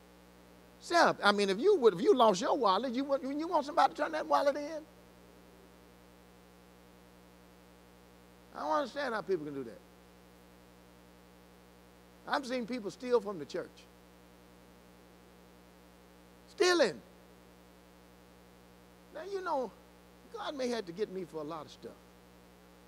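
An older man speaks through a microphone in short bursts with long pauses.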